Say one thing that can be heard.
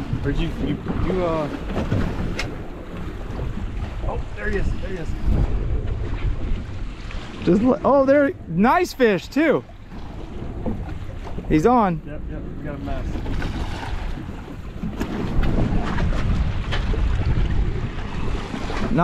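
Waves slap against a boat's hull.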